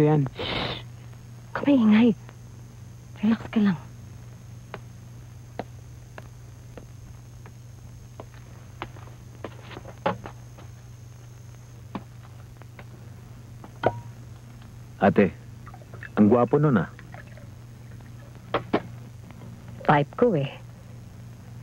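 A woman speaks tensely in short bursts, close by.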